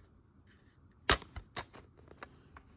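A plastic case clicks and snaps open.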